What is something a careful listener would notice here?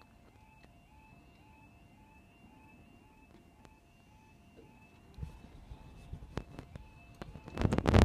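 A level crossing alarm beeps in a steady repeating two-tone pattern.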